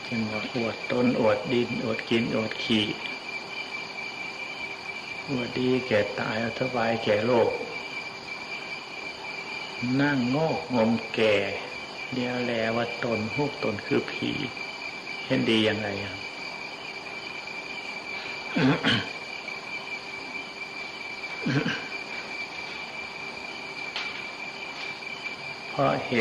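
An elderly man speaks calmly and slowly, with long pauses, through a microphone.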